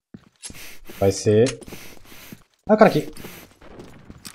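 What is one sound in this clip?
A young man talks with animation into a close microphone.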